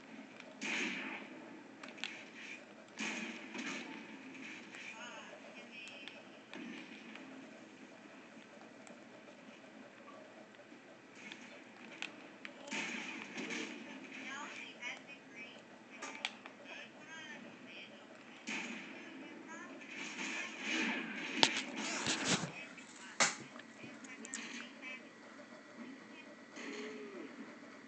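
Gunfire and explosions from a video game play through a television speaker.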